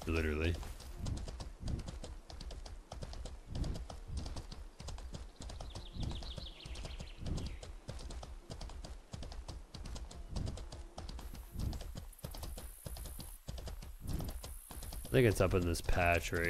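Hooves thud rhythmically as a horse gallops over grass.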